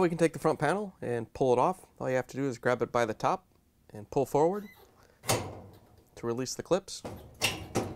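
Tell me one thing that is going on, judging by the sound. A dryer's front panel clicks as it is pried loose.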